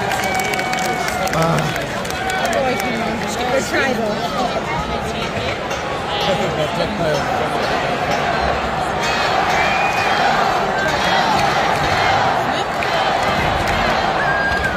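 A large crowd cheers and chatters loudly in a big echoing arena.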